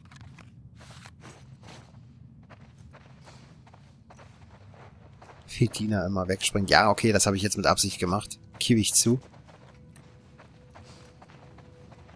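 Footsteps pad softly across a carpeted floor.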